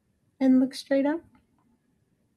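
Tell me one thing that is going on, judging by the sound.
A young woman speaks a few words close by.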